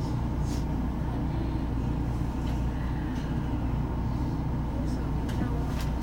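A train idles with a low, steady hum.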